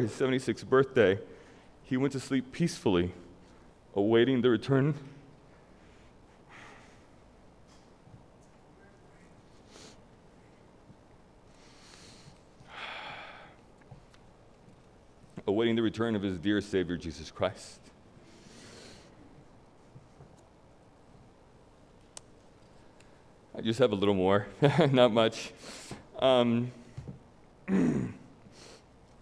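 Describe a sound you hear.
A man speaks into a microphone in a halting, emotional voice, with long pauses.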